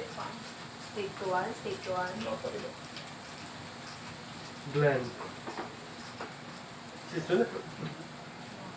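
A young man talks nearby.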